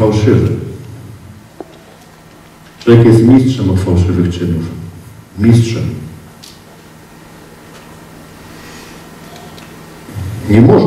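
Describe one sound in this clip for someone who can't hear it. A man speaks with animation through a microphone in a large echoing hall, in bursts with pauses.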